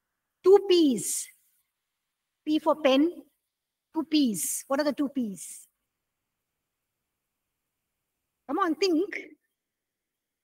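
A woman speaks calmly and expressively into a close microphone, in short phrases with pauses.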